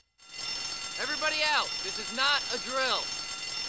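A man shouts urgently nearby.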